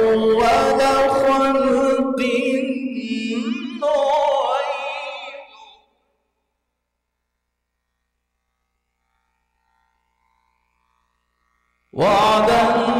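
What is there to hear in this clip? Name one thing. A man chants in a melodic recitation through a microphone, with a reverberant echo.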